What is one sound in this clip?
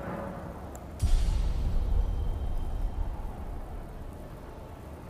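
A deep game chime booms and fades.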